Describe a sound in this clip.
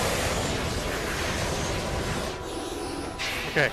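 A jetpack whooshes steadily in flight.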